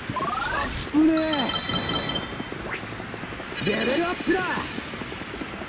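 Bright electronic chimes ring out as items are collected.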